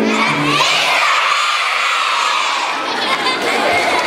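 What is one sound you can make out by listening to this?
A large choir of young children sings loudly in an echoing hall.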